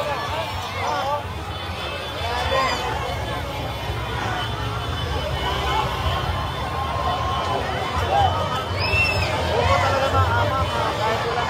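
A vehicle engine rumbles slowly through the crowd.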